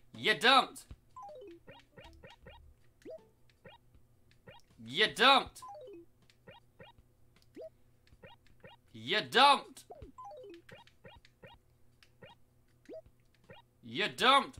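Short electronic blips sound as a game menu opens and moves.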